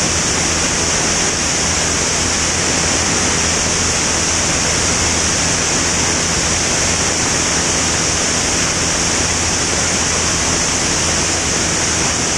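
Wind rushes loudly past the plane.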